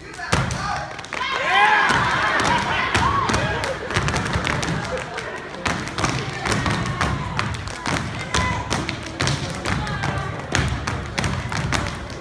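Dancers stomp their boots in a sharp, fast rhythm on a wooden stage.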